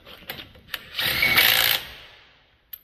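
A cordless drill whirs in a short burst.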